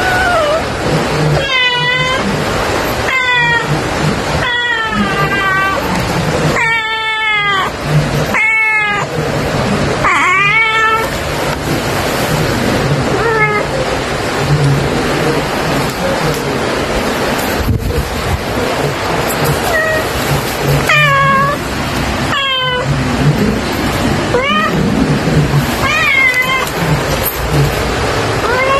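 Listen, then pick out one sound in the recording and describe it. A cat meows loudly and repeatedly close by.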